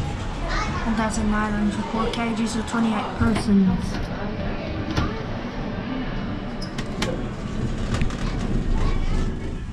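An elevator hums steadily.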